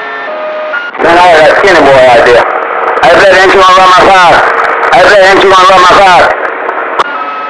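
A radio receiver bursts into a loud, warbling signal that cuts in and out.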